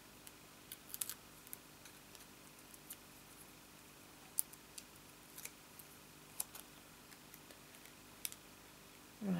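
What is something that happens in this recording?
Small plastic parts click and tap.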